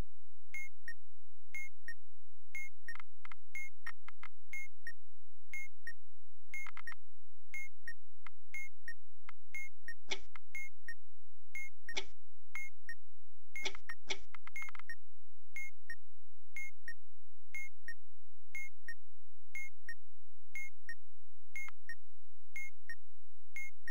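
A clock ticks steadily, about once a second.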